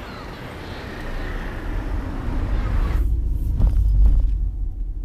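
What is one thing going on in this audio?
A car engine rumbles close by.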